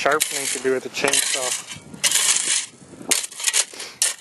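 A metal bar chops into ice with sharp thuds.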